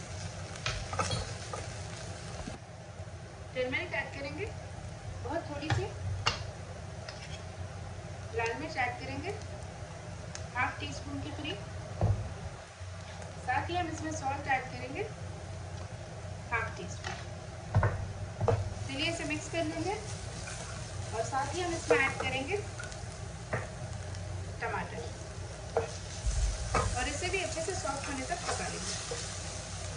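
Onions sizzle quietly in hot oil.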